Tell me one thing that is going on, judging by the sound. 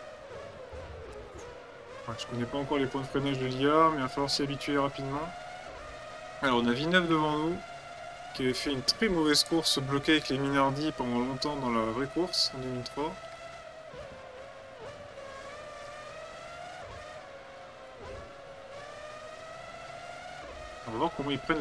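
A racing car engine whines and rises in pitch as it shifts through the gears.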